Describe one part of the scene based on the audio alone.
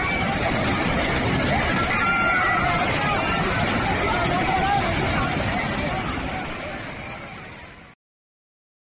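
A flooded river roars and rushes loudly over rocks.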